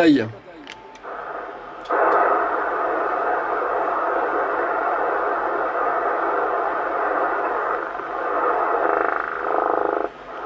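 Radio static hisses steadily from a loudspeaker.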